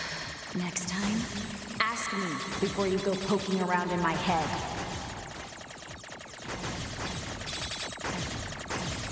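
Rapid electronic shots fire over and over in a video game.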